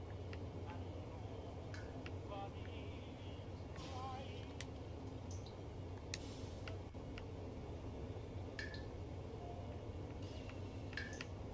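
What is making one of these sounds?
Soft menu clicks and blips sound now and then.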